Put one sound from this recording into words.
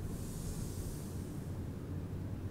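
Paper rustles softly as a sheet is handled.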